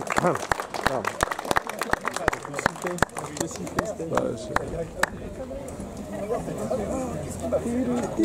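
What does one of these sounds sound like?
A brass band plays a lively tune outdoors.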